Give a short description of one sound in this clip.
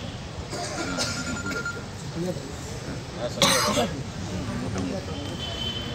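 A man talks into a phone.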